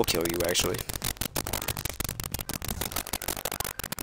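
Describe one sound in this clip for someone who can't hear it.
Dice clatter as they roll.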